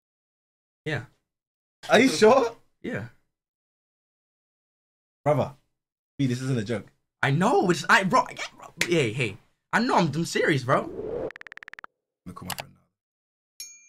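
A young man talks and laughs with animation, close to a microphone.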